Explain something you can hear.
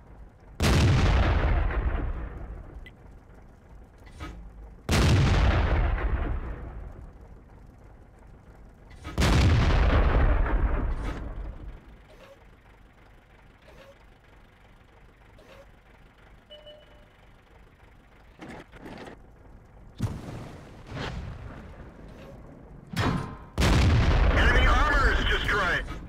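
A tank cannon fires with a heavy boom that rumbles away.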